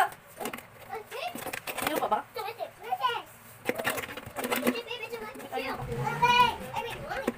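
A plastic wrapper crinkles in a woman's hands.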